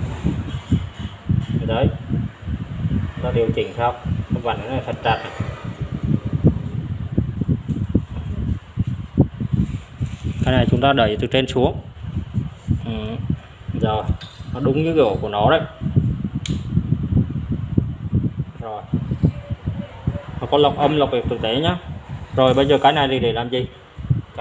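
Plastic parts click and rattle as they are handled and fitted together.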